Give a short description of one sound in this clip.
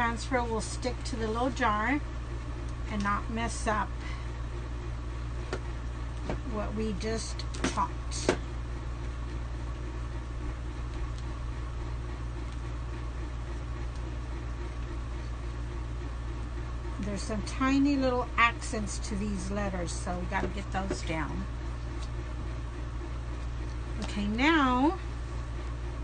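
A middle-aged woman talks calmly and close by, in short bursts with pauses.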